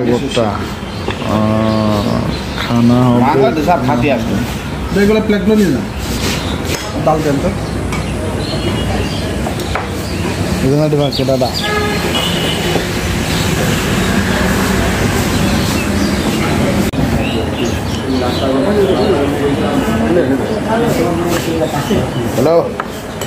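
A young man talks close to the microphone with animation.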